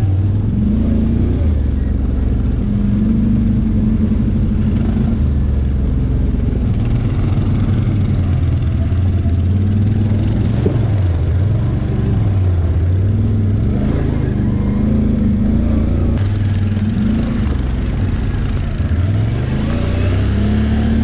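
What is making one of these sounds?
A nearby quad bike engine rumbles and revs up and down.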